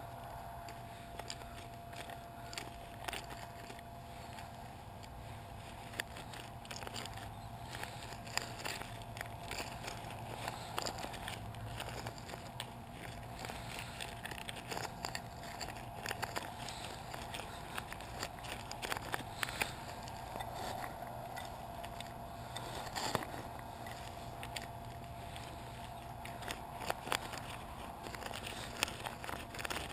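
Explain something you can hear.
Loose rubber chips rustle and patter as they are scattered.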